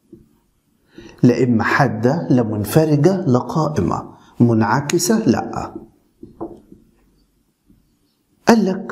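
A man speaks calmly and clearly close by, as if explaining.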